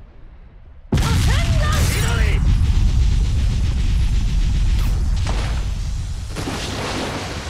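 Electricity crackles and roars loudly.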